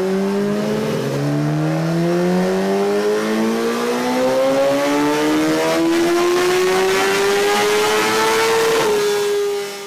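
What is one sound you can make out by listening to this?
A motorcycle engine revs up hard, its roar rising steadily in pitch.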